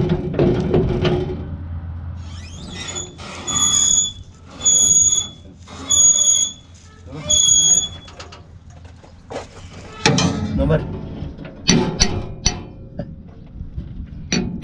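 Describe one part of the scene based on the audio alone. Metal parts clank and rattle inside a machine.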